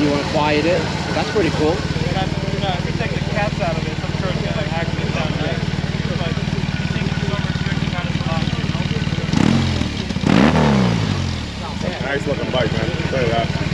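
A motorcycle engine idles with a steady, low rumble.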